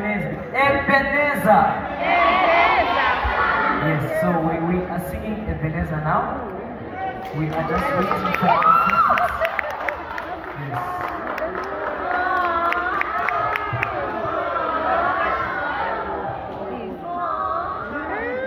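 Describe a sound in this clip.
A group of young men sing together in harmony through microphones and loudspeakers.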